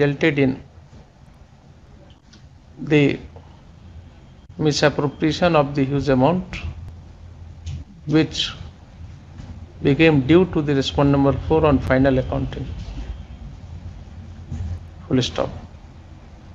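A middle-aged man speaks calmly in short bursts through an online call.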